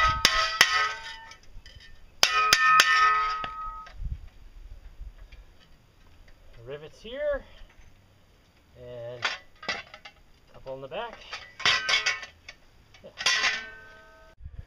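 A hammer strikes a steel shovel blade, which rings out sharply.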